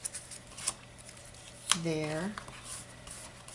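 Paper rustles as a hand sets a small strip of it down on a mat.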